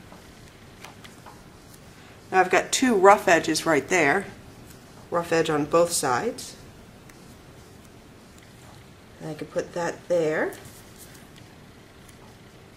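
Paper strips rustle softly as fingers press them.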